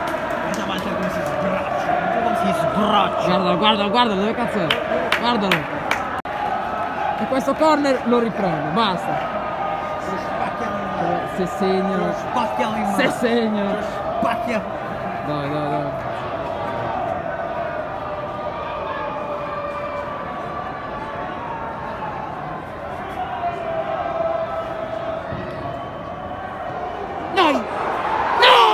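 A large stadium crowd chants and cheers, echoing through the stands.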